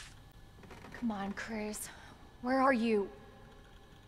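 A young woman speaks softly, close by.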